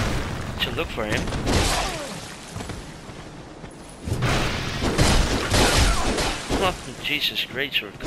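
A sword clashes and slashes against armour.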